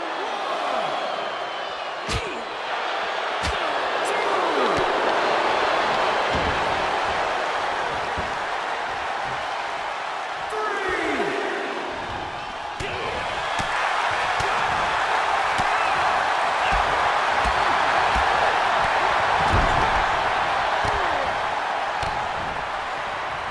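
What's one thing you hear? Heavy blows and thuds land as wrestlers strike each other.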